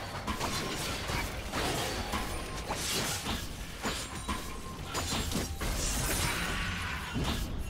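Game spell effects whoosh and burst in a fight.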